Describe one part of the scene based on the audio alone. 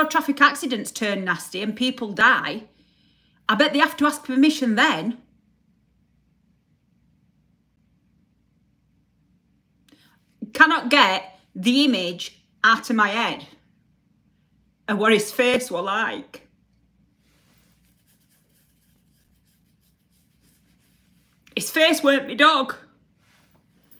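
A middle-aged woman talks with animation close to the microphone, pausing between phrases.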